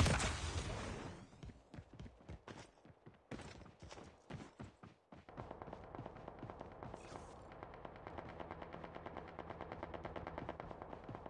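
Footsteps run on grass.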